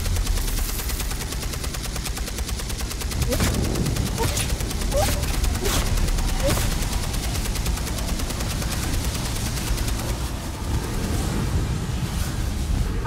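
Gunfire and explosions rumble and crack.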